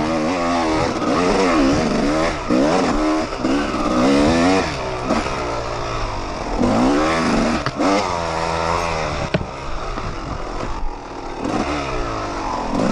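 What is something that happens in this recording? Tyres churn over a rough dirt trail.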